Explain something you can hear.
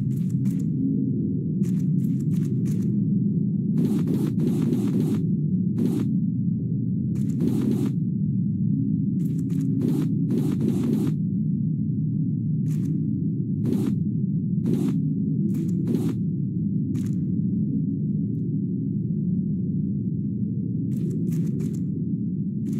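Water rumbles low and muffled all around, as if heard underwater.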